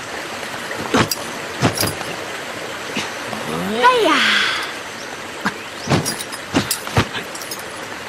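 Blows and footsteps thud sharply during a fight.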